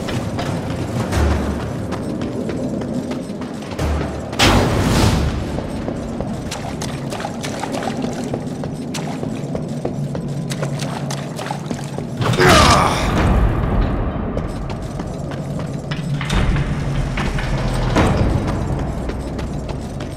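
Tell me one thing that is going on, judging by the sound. Heavy footsteps thud and clank on a hard stone floor.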